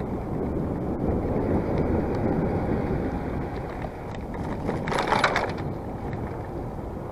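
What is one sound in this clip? Bicycle tyres roll over a rough path.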